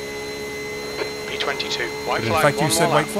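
A middle-aged man talks with animation into a close microphone.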